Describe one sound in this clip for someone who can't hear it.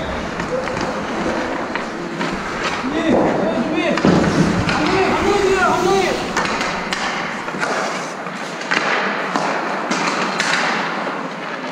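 Hockey sticks clack on the ice.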